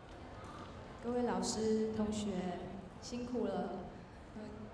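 A young woman speaks into a microphone over a loudspeaker in a large hall.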